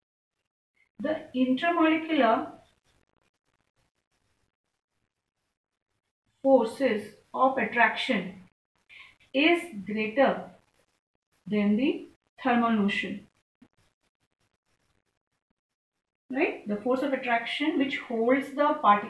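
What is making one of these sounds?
A woman explains calmly in a close voice, in short phrases with pauses.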